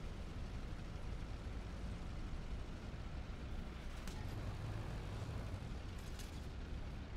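A tank engine rumbles as the tank drives.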